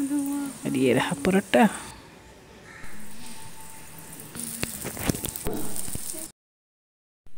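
Food sizzles in oil in a frying pan.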